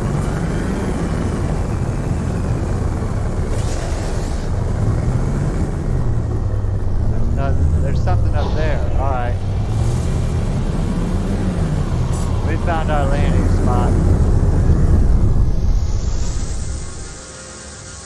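A spaceship engine rumbles low and steady, then dies away.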